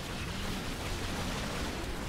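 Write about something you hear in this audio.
A fiery blast bursts and crackles.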